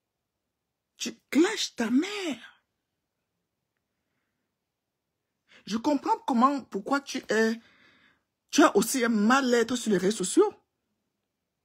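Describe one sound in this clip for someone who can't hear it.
A woman speaks close up, with feeling, in short bursts.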